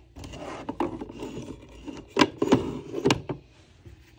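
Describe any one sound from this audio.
A hand taps and slides on a plastic box lid.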